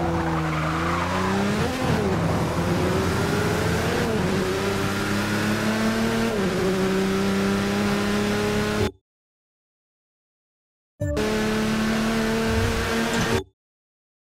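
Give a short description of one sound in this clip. A race car engine roars at high revs, dropping in pitch at each gear shift.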